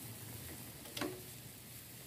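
A wire strainer clinks against a metal pot.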